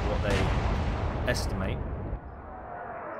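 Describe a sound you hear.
Heavy guns boom and explosions rumble.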